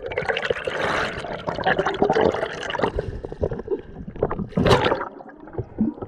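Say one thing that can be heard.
Water splashes as a swimmer breaks the surface and dives back under.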